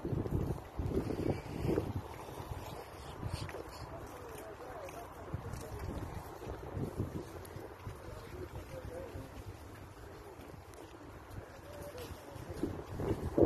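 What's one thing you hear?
Wind blows hard outdoors, rumbling against the microphone.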